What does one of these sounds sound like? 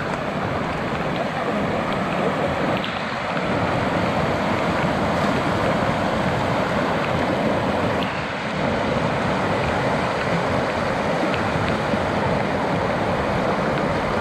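A muddy stream rushes and gurgles loudly close by.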